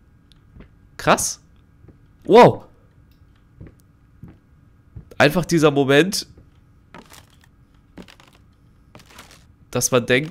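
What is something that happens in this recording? A young man talks and exclaims loudly and animatedly into a close microphone, in short bursts.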